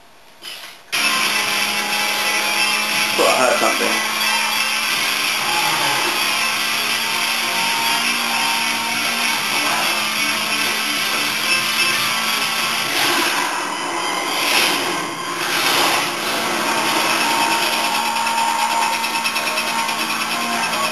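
A racing car engine roars steadily through a television speaker.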